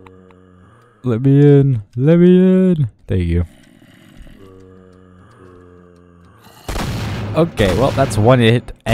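Zombies groan low and loud.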